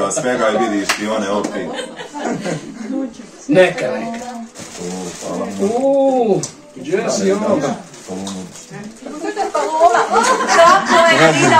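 A middle-aged man laughs.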